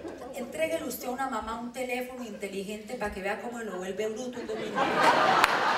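A woman speaks with animation through a microphone in a large hall.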